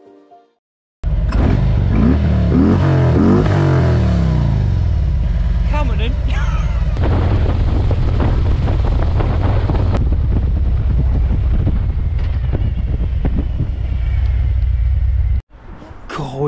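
A motorcycle engine rumbles loudly and steadily while riding.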